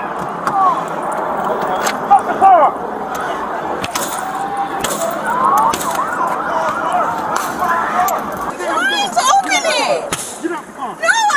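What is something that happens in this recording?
Several men shout loudly outdoors, close by.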